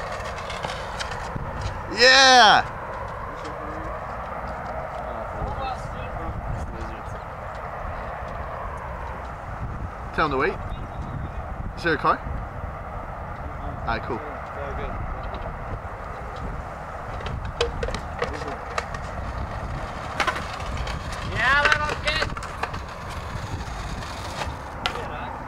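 Skateboard wheels roll and rumble on rough concrete.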